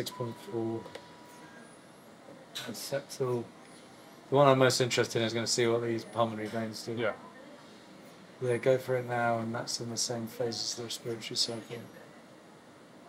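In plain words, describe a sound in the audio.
A young man speaks calmly, explaining, close by.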